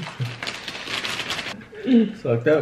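A chip bag rustles and crinkles close by.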